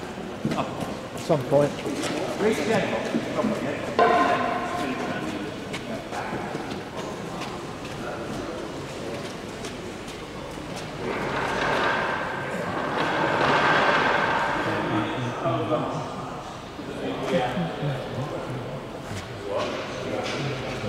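Older men talk among themselves in a large echoing hall.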